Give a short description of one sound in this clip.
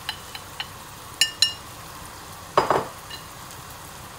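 Pieces of raw meat tumble from a bowl into a pan.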